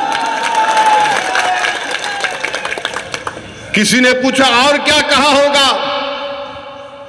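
A middle-aged man speaks forcefully into a microphone, heard through loudspeakers outdoors.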